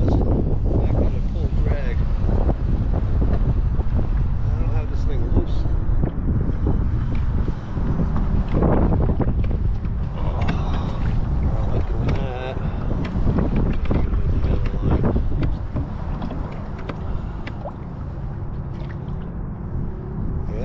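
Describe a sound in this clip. Wind blows hard across open water.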